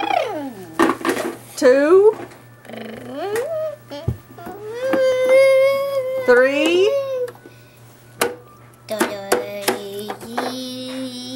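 A young boy vocalizes close by in drawn-out, wavering sounds.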